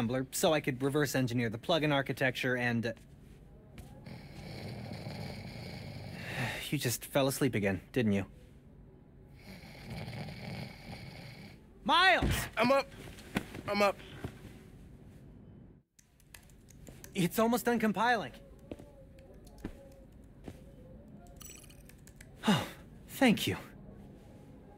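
A young man talks calmly.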